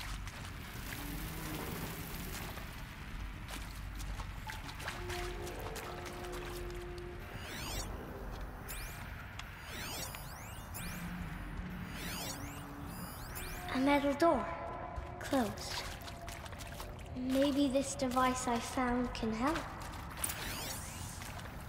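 Footsteps tread on the ground.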